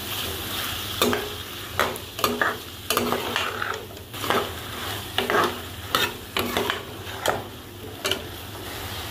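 A metal spoon scrapes and clinks against a pan while stirring food.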